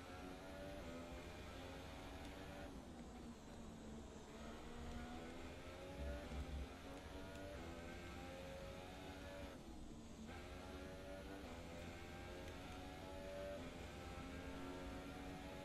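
A racing car engine screams at high revs, rising and dropping as the gears shift and the car brakes.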